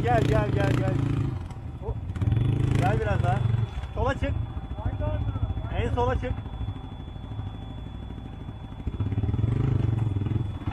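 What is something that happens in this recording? A quad bike engine rumbles and revs up close.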